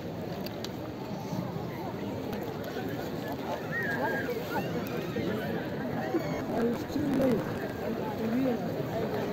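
A large crowd of men and women chatters outdoors all around.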